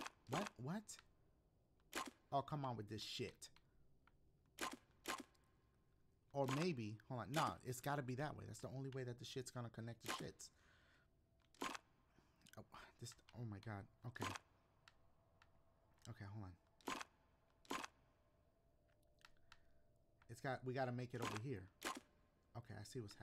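Game panel tiles click as they slide.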